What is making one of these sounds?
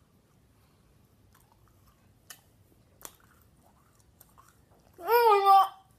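A boy chews candy.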